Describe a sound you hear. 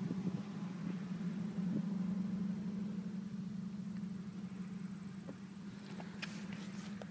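A diesel engine idles with a steady low rumble.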